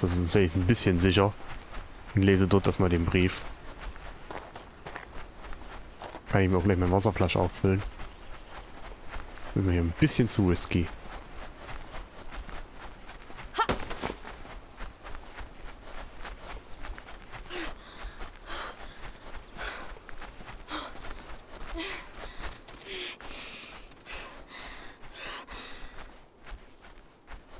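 Footsteps rustle through tall grass and leafy plants.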